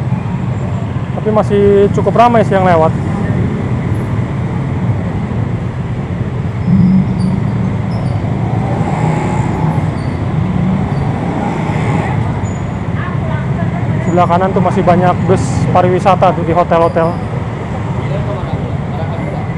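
Motorbike engines rumble steadily in busy street traffic close by.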